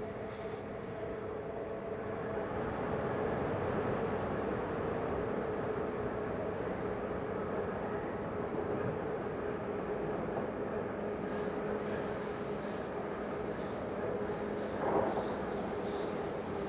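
A train's rumble turns hollow and echoing inside a tunnel.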